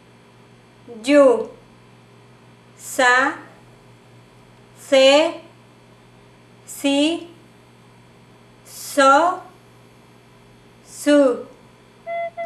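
A woman clearly sings out single syllables one at a time, with pauses between them.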